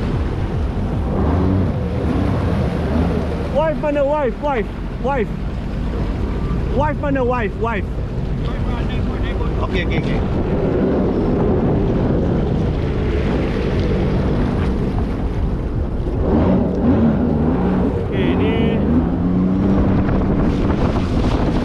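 Jet ski engines drone and rev up and down close by.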